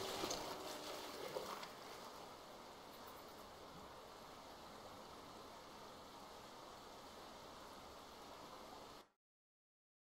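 Wind rustles through dry corn stalks outdoors.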